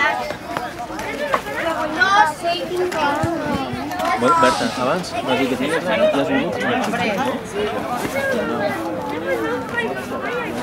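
Young children chatter and shout excitedly outdoors.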